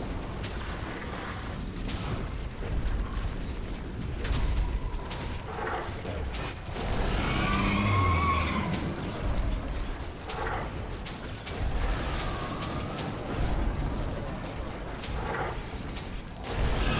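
Spell blasts and explosions crackle and boom in a fantasy battle.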